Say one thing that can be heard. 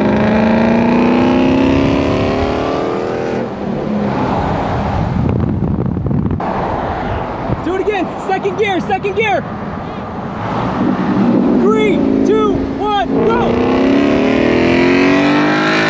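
Tyres and wind rush steadily on a highway.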